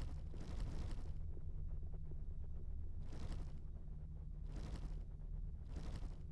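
A menu cursor clicks as it moves between items.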